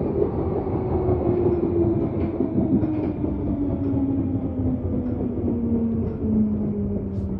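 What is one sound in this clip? An underground train rumbles and rattles loudly along the track.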